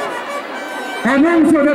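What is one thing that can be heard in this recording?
A man nearby shouts loudly.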